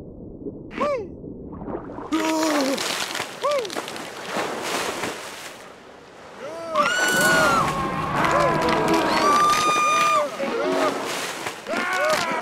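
Short electronic chimes ring out again and again.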